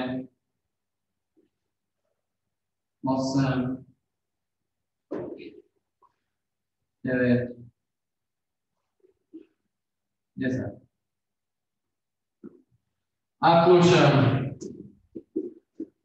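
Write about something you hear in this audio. A man speaks in short, loud bursts, giving instructions.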